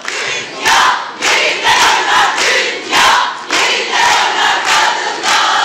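A group of women clap their hands in rhythm.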